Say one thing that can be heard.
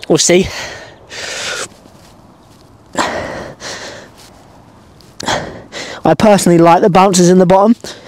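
A young man groans loudly nearby.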